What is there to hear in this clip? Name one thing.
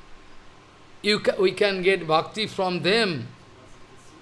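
An elderly man chants in a sung tone, close to a microphone.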